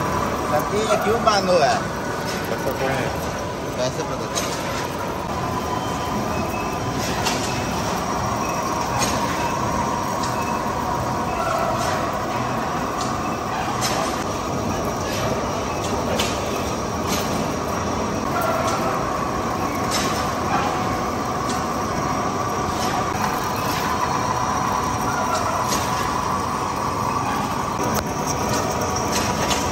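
Metal chips clink as they fall onto the lathe table.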